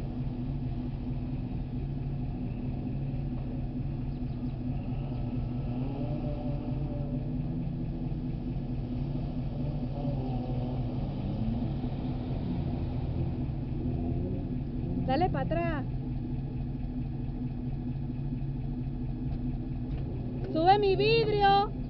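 Water splashes around a car's wheels.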